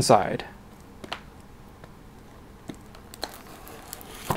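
Cardboard rustles and taps as a box is handled.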